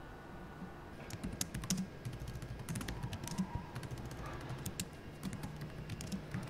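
Fingers tap quickly on a laptop keyboard.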